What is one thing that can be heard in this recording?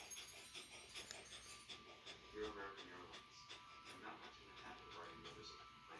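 A dog pants with quick breaths.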